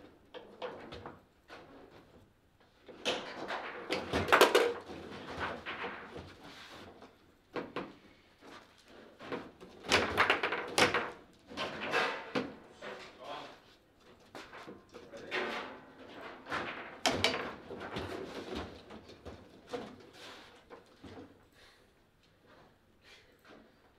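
Foosball rods clack and a ball knocks sharply against the table's players and walls.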